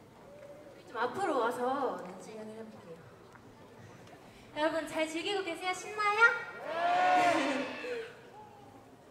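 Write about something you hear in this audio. Young women speak in turn into microphones, heard through loudspeakers in a large echoing hall.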